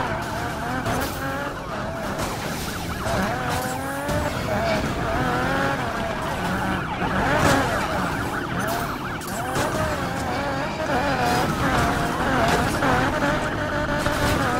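Metal crunches as cars crash into each other.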